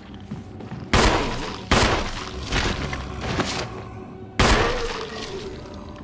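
Gunshots bang loudly and echo.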